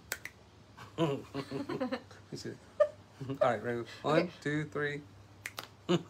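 A middle-aged man laughs cheerfully.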